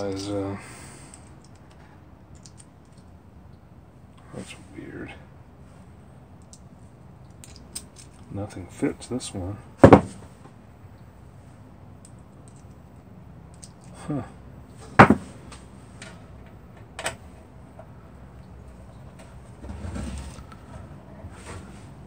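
Small metal parts click and clink as hands fit wires.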